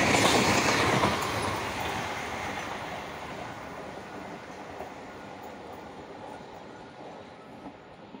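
A passing train rumbles away along the tracks and fades into the distance.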